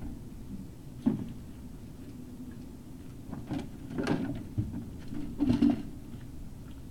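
A dog digs and rustles through dry pine needles.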